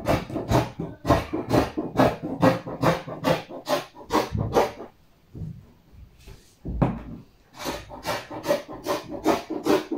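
Scissors snip through cloth.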